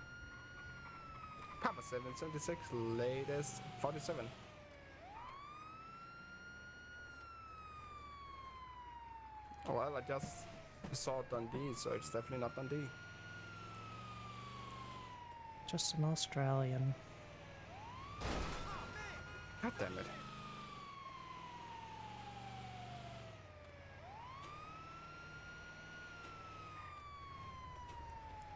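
An ambulance siren wails in a repeating rising and falling sweep.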